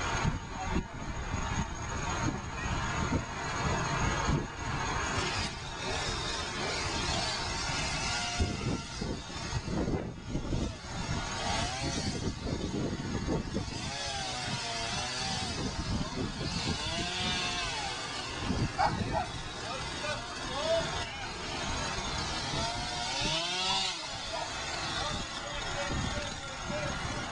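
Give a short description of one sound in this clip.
A truck engine idles steadily outdoors.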